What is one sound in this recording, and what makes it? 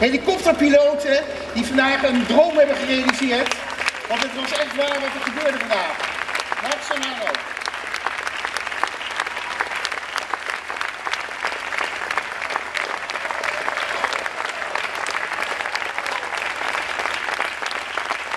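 An audience claps and applauds steadily in a large space.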